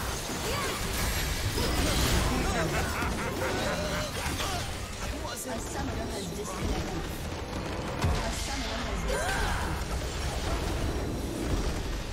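Fantasy spell effects whoosh, crackle and blast in a hectic battle.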